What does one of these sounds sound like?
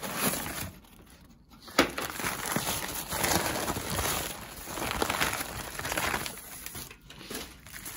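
Tissue paper rustles and crinkles.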